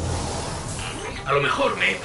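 An energy rifle fires a sharp zapping shot.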